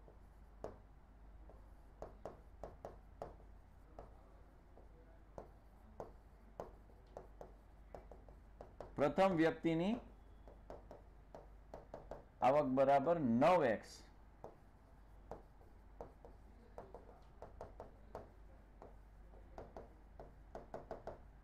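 A pen taps and scratches on a writing surface.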